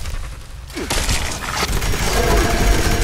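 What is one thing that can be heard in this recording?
A loud explosion booms and crackles.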